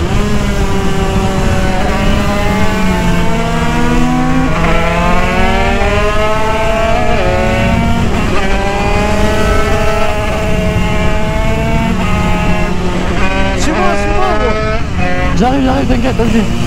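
A motorcycle engine revs and whines loudly, rising and falling in pitch as the rider shifts gears.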